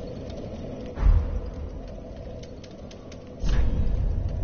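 A soft thud sounds as a game menu changes.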